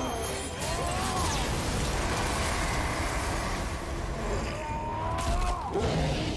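Heavy blows and crashes thud through a fight.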